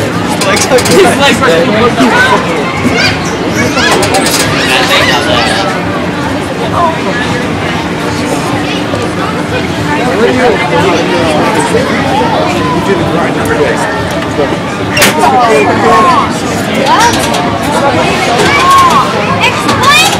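A crowd of people chatters nearby, outdoors.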